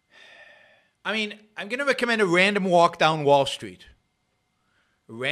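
An older man speaks calmly and close into a microphone.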